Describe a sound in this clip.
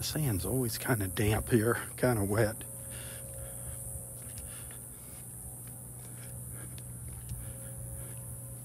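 Wind blows softly across open ground outdoors.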